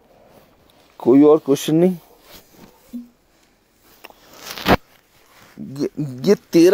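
A young man speaks close to a phone microphone, loudly and with animation.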